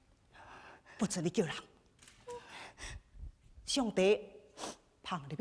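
A young woman sings in a high, wavering voice, in sharp bursts of opera-style song.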